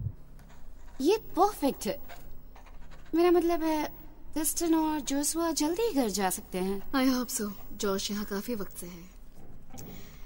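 A young woman talks calmly and warmly, close by.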